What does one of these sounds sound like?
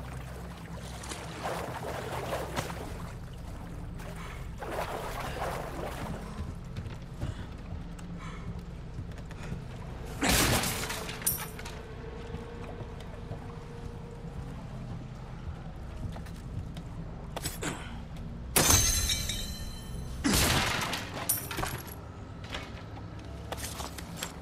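Footsteps tread over mud and creaking wooden boards.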